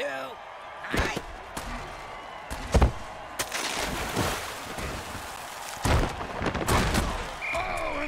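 Armoured players crash together in heavy thudding tackles.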